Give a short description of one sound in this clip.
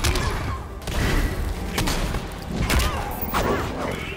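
A blast bursts with a loud boom.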